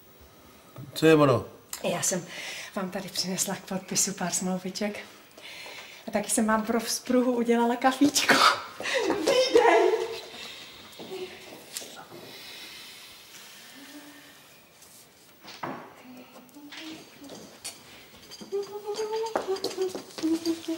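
A woman speaks calmly and cheerfully nearby.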